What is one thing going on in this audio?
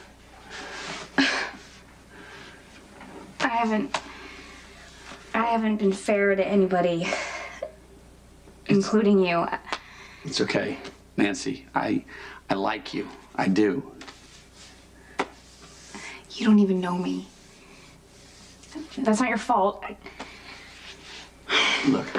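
A woman sobs and speaks emotionally, close by.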